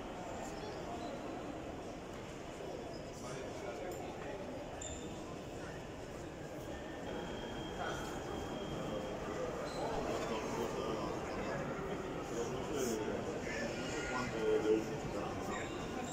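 Many people chatter indistinctly in a large echoing hall.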